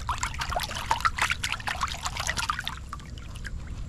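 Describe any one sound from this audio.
A hand swishes and splashes through shallow water.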